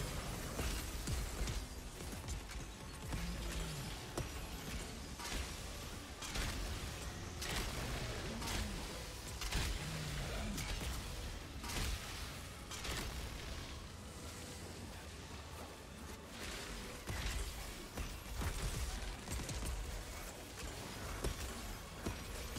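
Fiery explosions boom with a low rumble.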